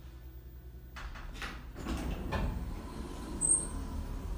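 Elevator doors slide open with a rumble.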